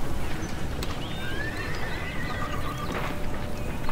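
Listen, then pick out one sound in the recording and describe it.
Hammers knock on wood as a building goes up.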